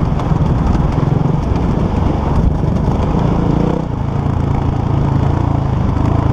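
Wind rushes past a helmet outdoors.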